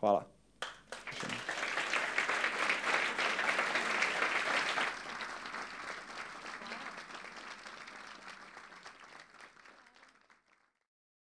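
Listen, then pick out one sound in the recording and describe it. An audience applauds and then fades away.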